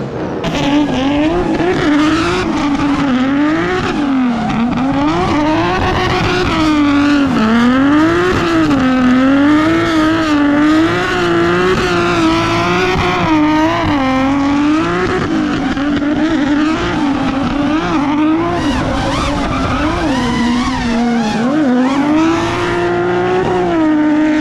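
Tyres squeal on asphalt as a car drifts.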